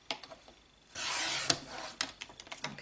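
A paper trimmer blade slides along and cuts through card.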